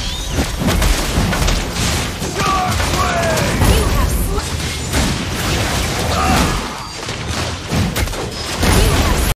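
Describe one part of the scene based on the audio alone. Magic blasts and crackling impacts burst rapidly during a fight.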